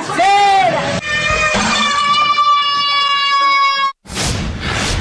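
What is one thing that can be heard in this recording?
A party horn blares with a long steady tone.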